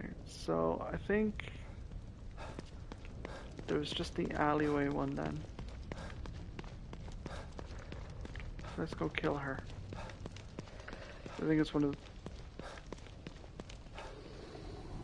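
Footsteps tap quickly on wet pavement.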